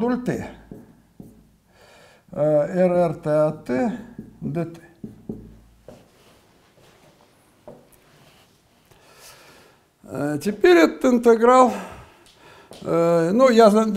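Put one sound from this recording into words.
An elderly man lectures in a calm, steady voice, heard close by.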